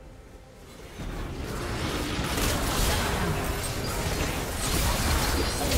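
Magic blasts and sharp hits crash loudly during a fight in a video game.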